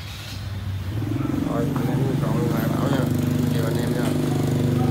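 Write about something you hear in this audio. A motorbike engine runs steadily nearby.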